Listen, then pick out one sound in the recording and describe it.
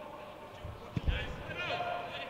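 A football is struck hard with a thud.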